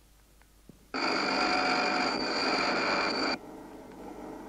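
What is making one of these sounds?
A grinding wheel whirs steadily against metal.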